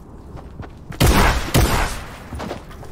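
A gun fires a quick burst of loud shots.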